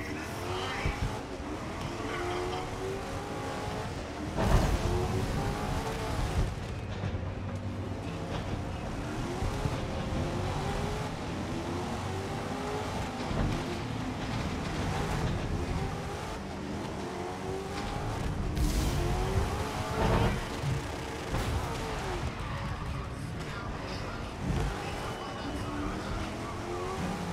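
A hot rod engine revs hard and shifts through the gears.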